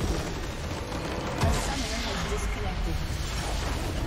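A deep booming blast rings out as a crystal structure explodes.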